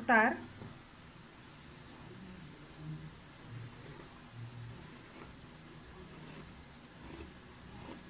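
Scissors snip through layers of paper.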